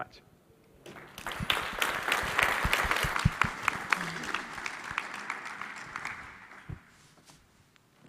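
An audience claps in applause.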